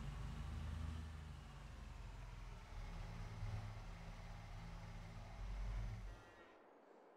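A vehicle engine idles with a low, steady rumble.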